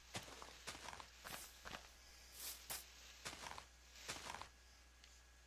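Leaf blocks crunch and break in quick, repeated bursts.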